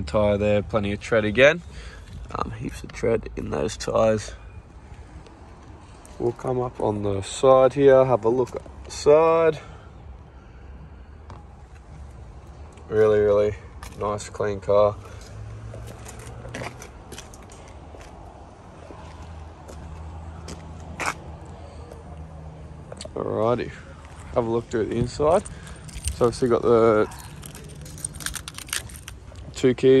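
A young man talks calmly and close by, in short bursts with pauses.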